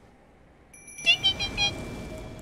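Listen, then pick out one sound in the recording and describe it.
A magic spell rings out with a bright, sparkling chime.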